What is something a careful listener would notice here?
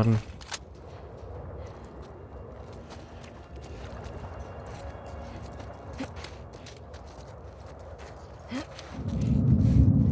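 Footsteps crunch softly on gravel and debris.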